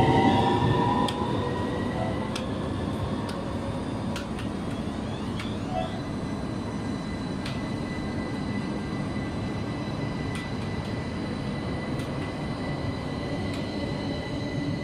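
A tram's motor whines and glides in pitch as it moves.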